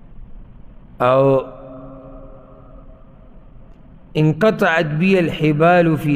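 A man chants melodically into a close microphone, with echo.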